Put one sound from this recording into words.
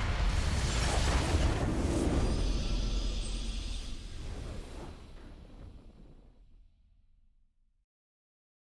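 A triumphant victory fanfare swells and fades out.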